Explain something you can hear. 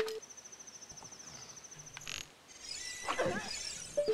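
A bow twangs as an arrow is shot.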